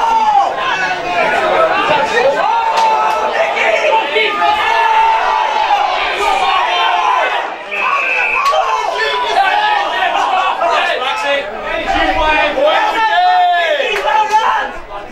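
A crowd of men and women shout and call out close by, outdoors.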